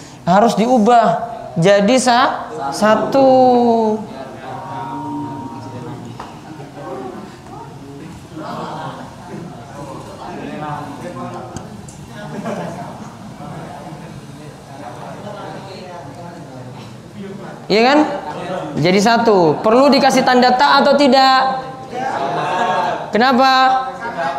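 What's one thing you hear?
A man speaks calmly into a microphone, explaining.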